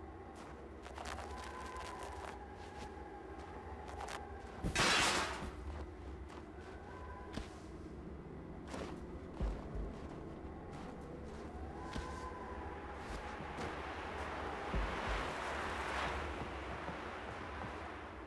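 Wind howls and gusts through a snowstorm.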